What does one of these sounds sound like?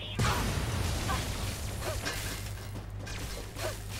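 An explosion bursts with a roar.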